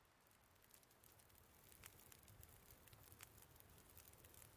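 A small fire catches and begins to crackle and pop.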